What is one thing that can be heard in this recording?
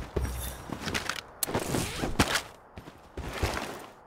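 A gun clicks and rattles as it is switched.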